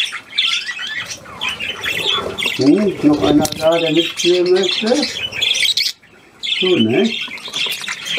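Many budgies chirp and chatter close by.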